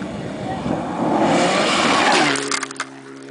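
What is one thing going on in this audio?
A rally car engine roars loudly as the car speeds along a gravel road.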